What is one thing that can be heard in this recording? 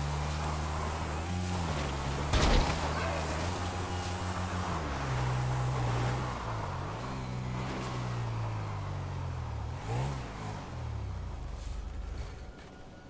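A motorbike engine hums and revs up and down.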